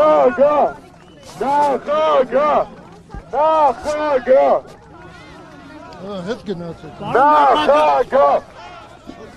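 A man speaks loudly and with animation close to a microphone.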